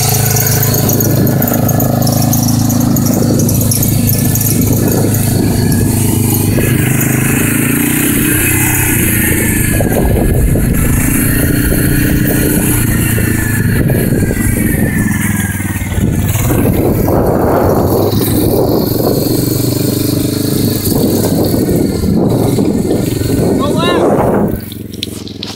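A small engine idles steadily close by.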